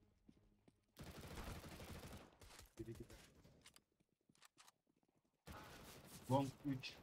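Gunfire rings out in short bursts.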